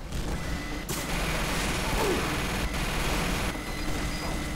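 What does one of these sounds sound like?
A minigun fires in long, rattling bursts.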